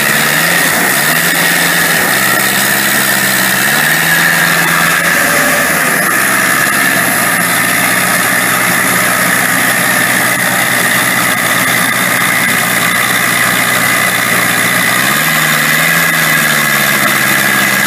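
A heavy machine's engine roars steadily close by, its pitch rising and falling.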